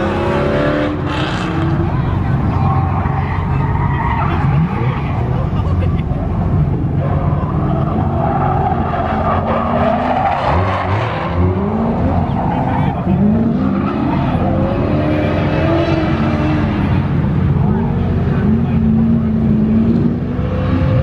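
A car engine revs hard, rising and falling.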